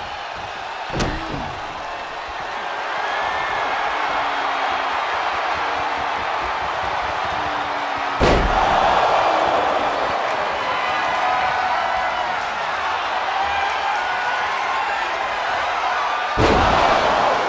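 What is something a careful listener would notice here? Heavy thuds of bodies hitting the mat boom out a few times.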